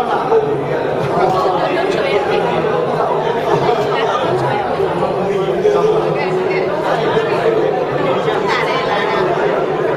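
An elderly woman speaks warmly up close.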